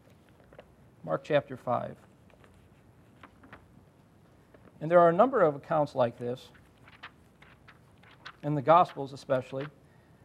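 A man speaks calmly and slowly into a microphone.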